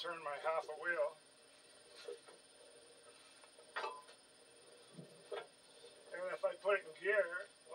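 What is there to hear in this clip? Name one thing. A hand rubs and scrapes along a metal wheel rim.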